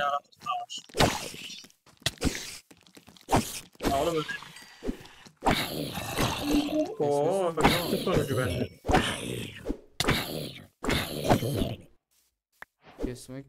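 A sword strikes a zombie with sharp thuds.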